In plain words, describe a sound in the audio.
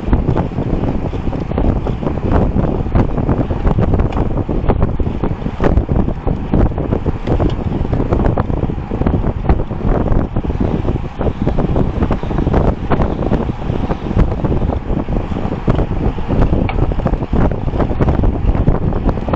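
Strong wind rushes loudly past, buffeting the microphone.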